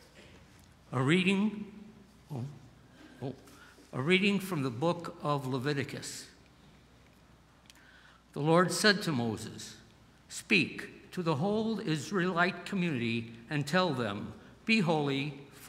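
An elderly man speaks calmly into a microphone in a large echoing room.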